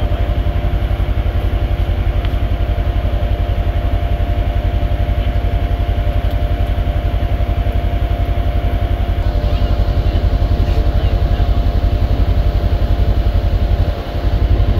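An off-road vehicle's engine idles with a steady, rapid throb.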